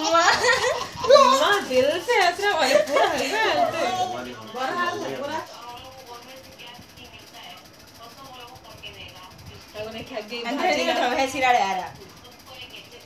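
A young woman talks and laughs playfully close by.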